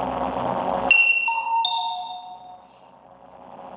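A short electronic game sound effect rings out.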